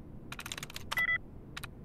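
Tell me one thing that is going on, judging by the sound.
A computer terminal gives a short beep.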